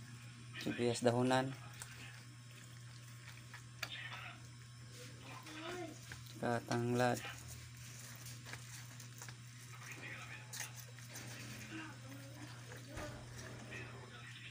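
Hands rub and squish raw chicken in a metal pot.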